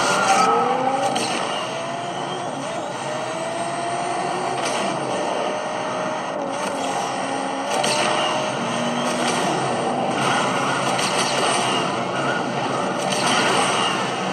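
A racing game's car engine roars steadily at high speed.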